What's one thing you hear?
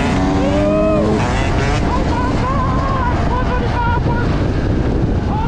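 Wind buffets loudly as the motorcycle rides outdoors.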